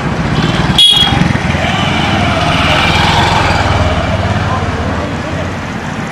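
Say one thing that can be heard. A motorcycle engine hums as it rides past close by.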